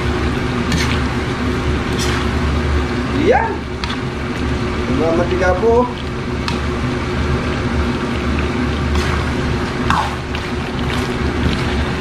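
A wooden spoon scrapes and stirs in a pan.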